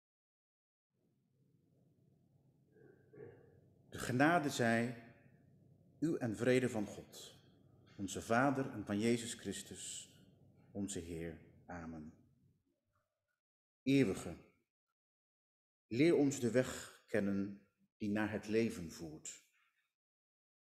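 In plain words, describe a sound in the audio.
A man speaks with animation through a microphone in a reverberant room.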